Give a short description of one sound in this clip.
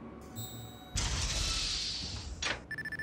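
A metal door swings open.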